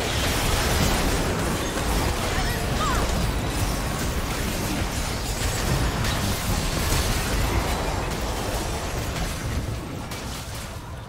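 Spell effects crackle and burst during a game fight.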